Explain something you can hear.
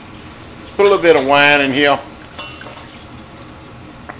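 Liquid pours from a bottle into a pan.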